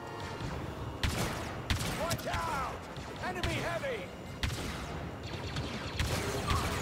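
Blaster shots fire in sharp bursts.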